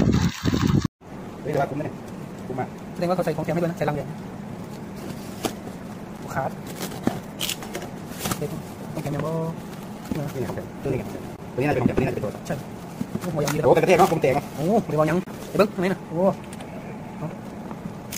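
Cardboard scrapes and rustles as a parcel is opened.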